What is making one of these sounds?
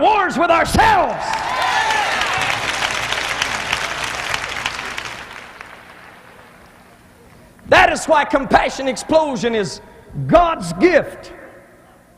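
A man preaches loudly and with passion through a microphone in a large echoing hall.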